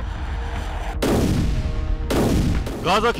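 A large artillery gun fires with heavy booming blasts.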